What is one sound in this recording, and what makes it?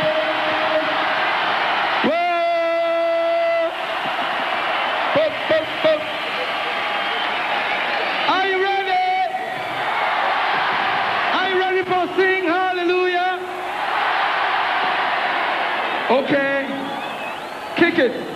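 Loud pop music with a beat plays through speakers.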